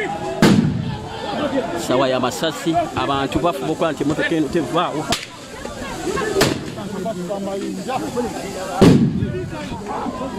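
Men talk and shout up close.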